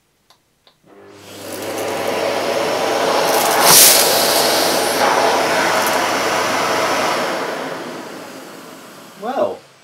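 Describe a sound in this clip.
A vacuum cleaner runs with a loud, steady whoosh, then slowly fades.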